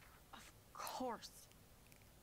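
A young woman speaks briefly and sharply.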